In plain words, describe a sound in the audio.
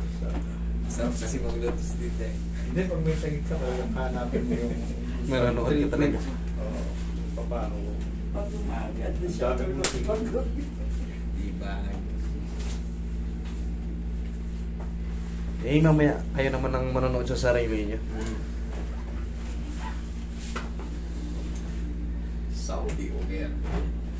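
An air conditioner hums steadily.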